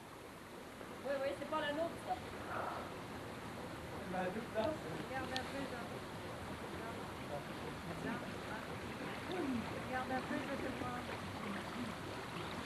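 A man talks outdoors.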